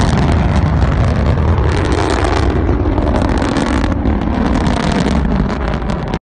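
A rocket engine roars and crackles loudly as it climbs away.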